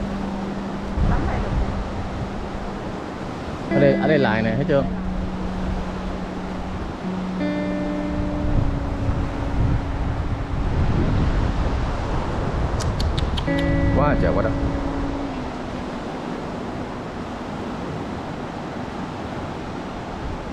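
Small waves wash gently onto a sandy shore outdoors.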